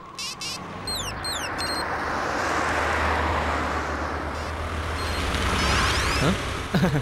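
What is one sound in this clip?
A motor scooter engine hums as the scooter rolls up and stops.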